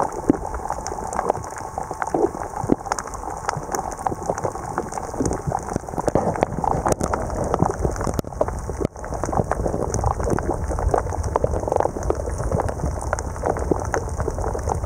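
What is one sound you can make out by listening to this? Water rumbles and swishes in a steady muffled way underwater.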